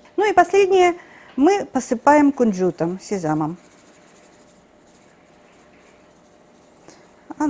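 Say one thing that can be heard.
A shaker rattles as sugar is sprinkled.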